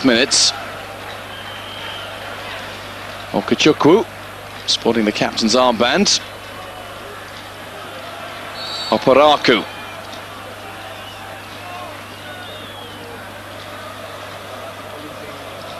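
A large stadium crowd murmurs steadily in the distance.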